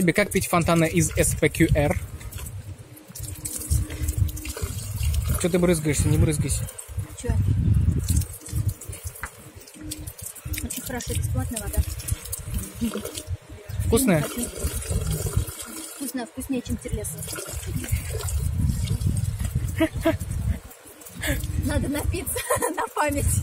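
Water trickles from a fountain spout and splashes.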